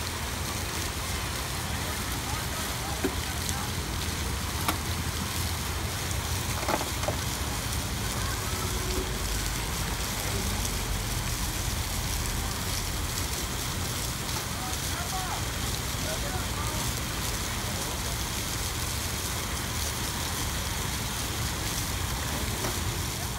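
Wind blows steadily outdoors.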